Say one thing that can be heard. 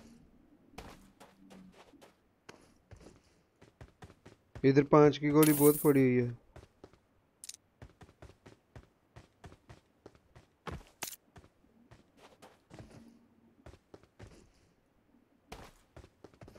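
Footsteps crunch quickly over hard ground.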